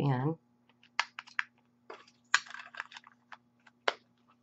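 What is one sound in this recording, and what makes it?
Batteries click into a small plastic device.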